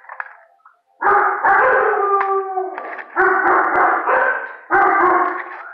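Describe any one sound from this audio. A dog barks loudly and repeatedly close by.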